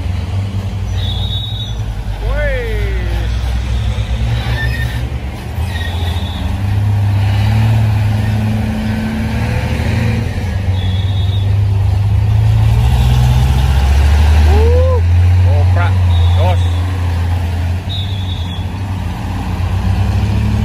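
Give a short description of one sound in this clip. Trucks roll slowly past with revving engines.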